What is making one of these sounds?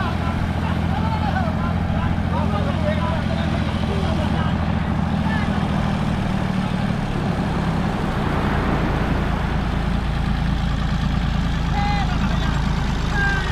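Men call out to each other outdoors at a distance.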